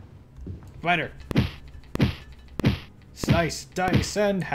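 A sword hacks into a creature with wet, heavy blows.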